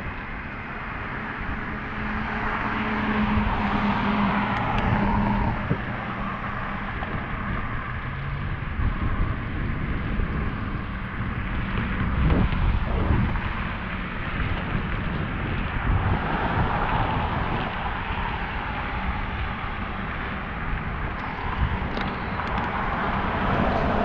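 Wind rushes past the microphone of a moving bicycle.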